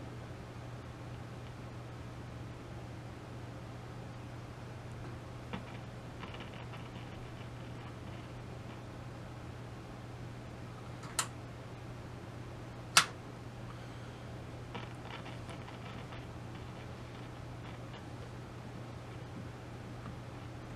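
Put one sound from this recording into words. An electrical device hums steadily.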